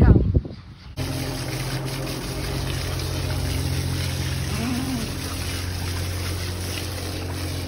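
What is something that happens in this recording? Water sprays from a hose and splashes onto the ground.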